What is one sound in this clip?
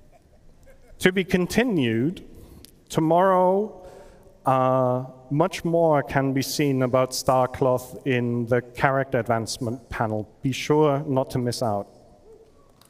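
A man speaks with animation through a microphone and loudspeakers in a large hall.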